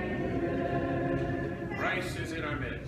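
A man chants in a slow, steady voice in an echoing hall.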